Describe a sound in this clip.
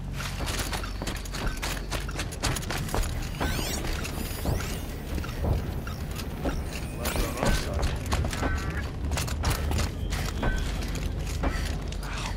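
Footsteps crunch quickly over dirt and gravel.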